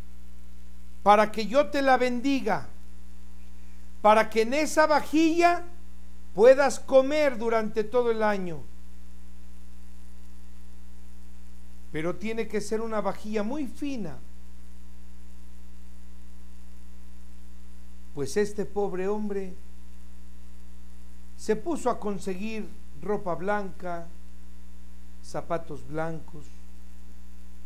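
An elderly man speaks with animation into a close microphone, pausing between phrases.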